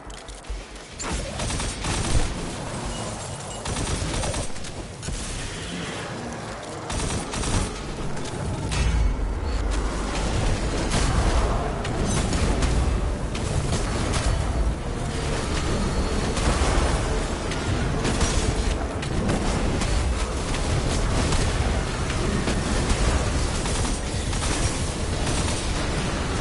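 Guns fire in quick bursts.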